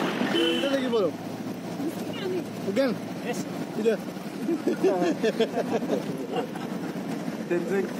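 A man talks in a car nearby.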